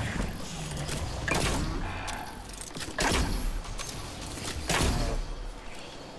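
Energy blasts boom and crackle.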